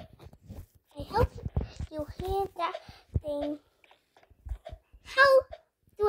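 A young girl talks excitedly, close to a microphone.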